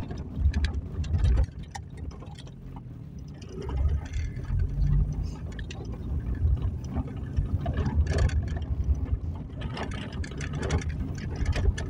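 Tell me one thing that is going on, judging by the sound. A car engine rumbles as a car drives slowly.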